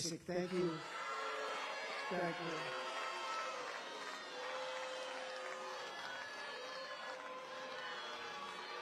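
A crowd applauds and cheers loudly in a large hall.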